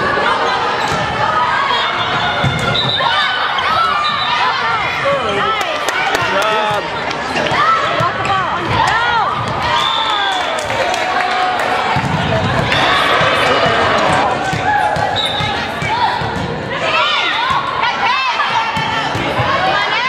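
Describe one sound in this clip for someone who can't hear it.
Shoes squeak sharply on a gym floor.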